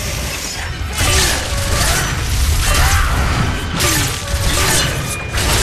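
A blade swishes and clangs in quick strikes.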